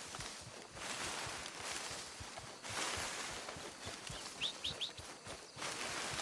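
Leafy bushes rustle as a man pushes through them.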